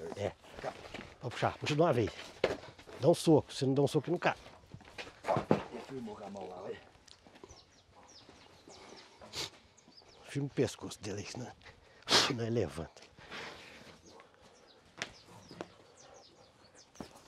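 Men talk with animation nearby, outdoors.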